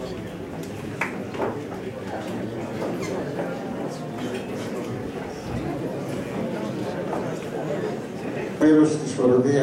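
A crowd murmurs and chatters in a hall.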